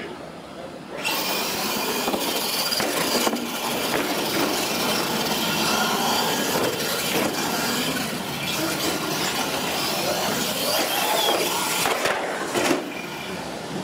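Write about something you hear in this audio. Knobby tyres rumble and scrub over a concrete floor.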